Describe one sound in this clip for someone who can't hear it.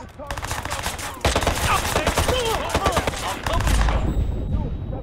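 Pistol shots ring out in rapid succession.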